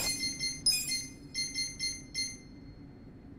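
Short electronic menu beeps tick in quick succession.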